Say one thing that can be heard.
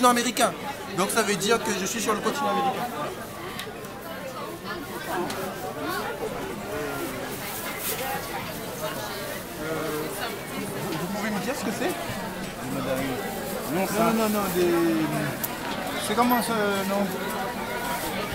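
A crowd chatters all around.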